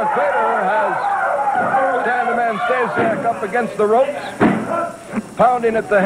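Blows thud as wrestlers strike each other.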